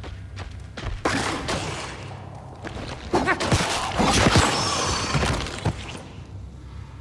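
A blade swings and strikes with loud, harsh hits.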